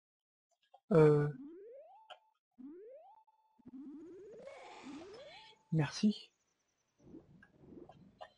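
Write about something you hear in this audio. A young man speaks close to a microphone in short bursts.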